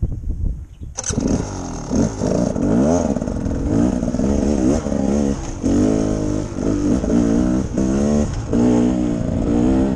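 A motorcycle engine roars steadily as the bike rides along a dirt track.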